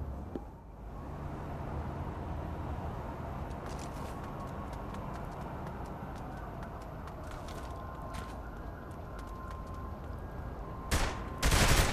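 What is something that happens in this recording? Car engines hum steadily nearby.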